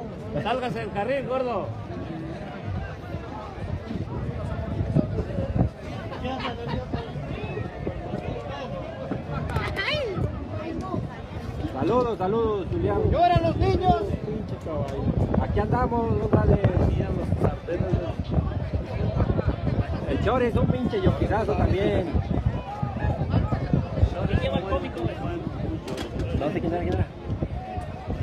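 A large outdoor crowd chatters and calls out loudly.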